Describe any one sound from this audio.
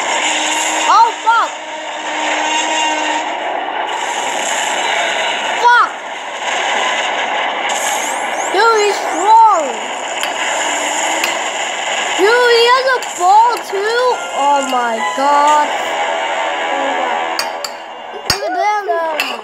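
Cartoon dinosaurs screech and cry through a television speaker.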